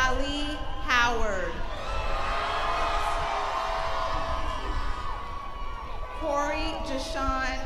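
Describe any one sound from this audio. A woman announces names through a loudspeaker.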